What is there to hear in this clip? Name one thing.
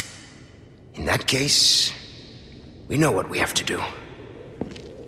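A man speaks smoothly and confidently, close by.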